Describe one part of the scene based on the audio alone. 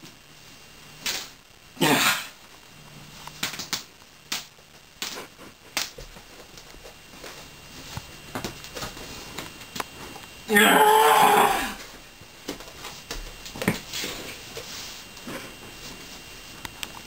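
Cloth rustles and flaps as a shirt is shaken and pulled on and off.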